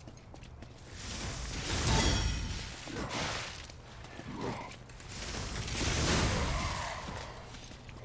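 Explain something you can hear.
Blades clash and swish in a fierce fight.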